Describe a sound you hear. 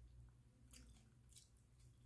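A man crunches on a crisp snack.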